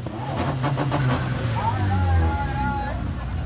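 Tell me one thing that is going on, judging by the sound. A car engine revs loudly nearby.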